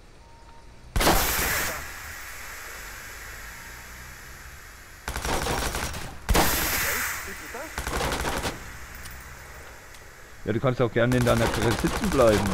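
A pistol fires rapid bursts of gunshots.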